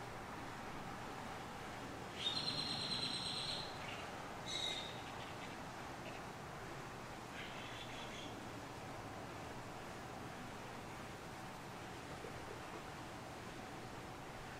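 A rabbit nibbles grass softly.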